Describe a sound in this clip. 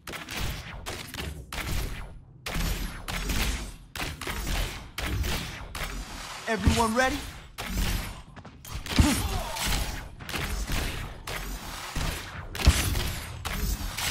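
Quick footsteps thud on a wooden floor.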